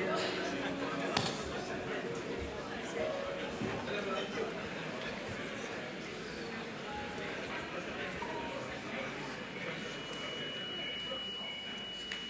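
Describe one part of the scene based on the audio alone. A large mixed choir sings in an echoing hall.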